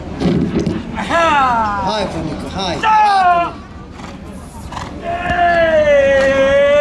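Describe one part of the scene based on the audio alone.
A man shouts loudly, urging on a horse.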